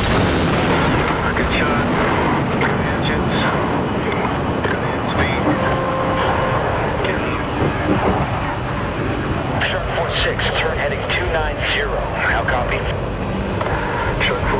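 Heavy rain patters against a cockpit canopy.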